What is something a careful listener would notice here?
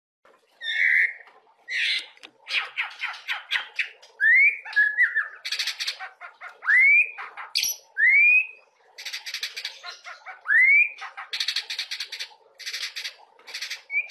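A songbird sings loudly nearby with rising whistles and rapid chattering trills.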